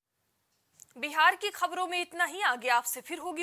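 A young woman reads out the news clearly through a microphone.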